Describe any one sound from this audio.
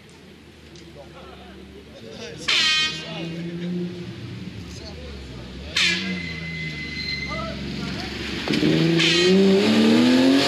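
A rally car engine roars as it approaches and grows louder, revving up as it climbs.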